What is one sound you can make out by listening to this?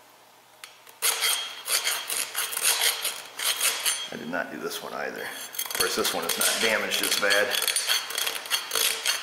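A wire brush scrapes rapidly against metal.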